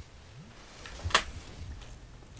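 A sword strikes with a sharp metallic clang.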